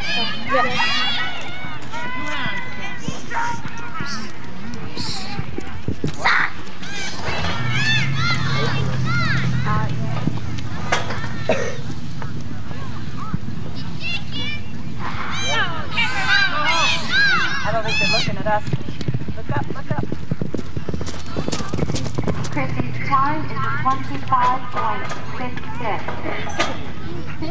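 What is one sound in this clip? A crowd cheers and shouts from a distance.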